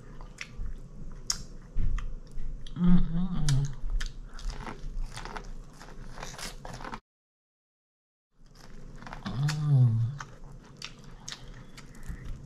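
A woman bites and chews corn crunchily close to the microphone.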